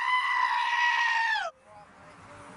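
A goat screams loudly.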